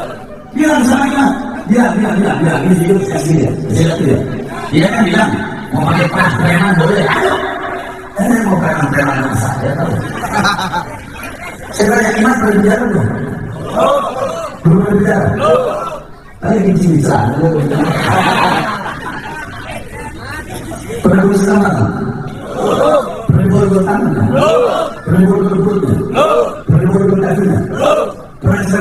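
A man talks steadily into a close microphone.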